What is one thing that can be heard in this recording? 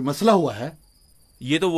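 A young man speaks tensely up close.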